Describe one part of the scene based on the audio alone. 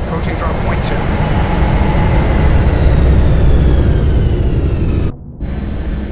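A spacecraft's engines roar loudly as it flies low overhead.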